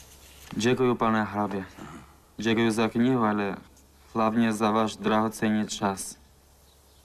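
A young man speaks calmly and politely, close by.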